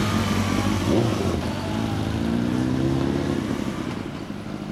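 A motorcycle engine revs and rises in pitch as it accelerates.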